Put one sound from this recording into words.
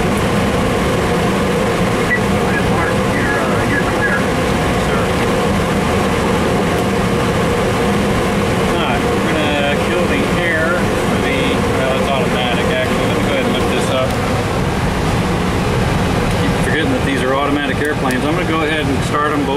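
An aircraft's engines hum steadily.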